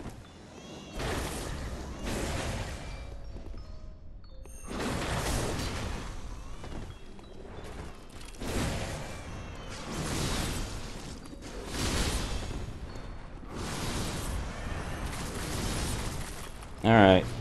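Blades slash and swoosh through the air in repeated bursts.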